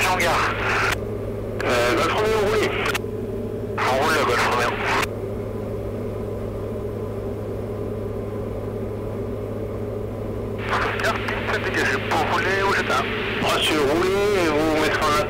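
A small plane's engine drones steadily throughout.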